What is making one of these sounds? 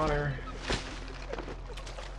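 Dry grass rustles underfoot.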